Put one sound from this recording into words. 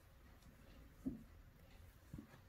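Soft thumps sound as a stuffed toy is handled.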